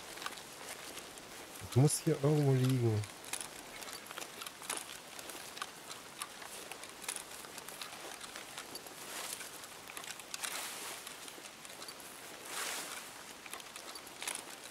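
Footsteps crunch through grass and dirt at a steady walking pace.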